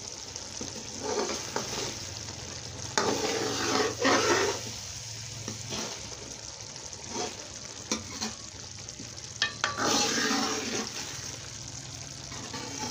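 A metal spoon stirs and scrapes a thick sauce in a steel pan.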